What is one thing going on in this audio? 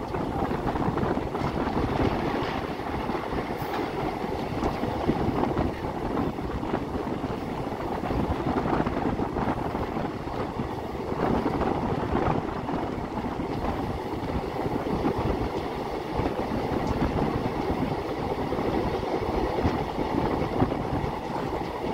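A train rumbles and clatters steadily along the rails.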